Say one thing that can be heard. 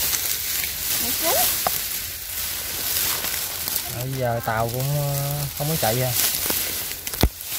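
Dry grass rustles and crackles as a hand pushes through it.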